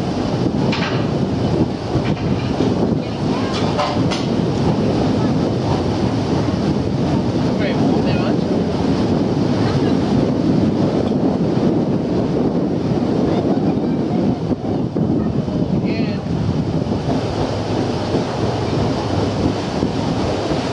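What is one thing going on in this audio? A boat motor hums steadily and close by.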